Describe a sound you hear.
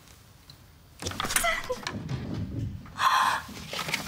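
A metal safe door swings open.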